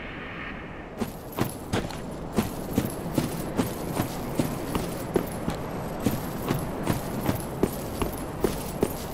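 Armoured footsteps crunch steadily on the ground.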